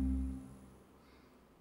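An orchestra's final chord rings out and fades.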